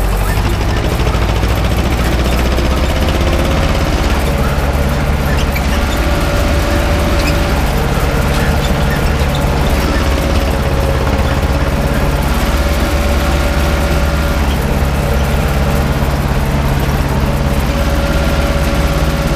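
A tractor engine rumbles steadily up close.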